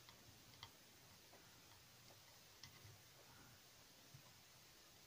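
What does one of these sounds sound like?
Small tools click and tap faintly.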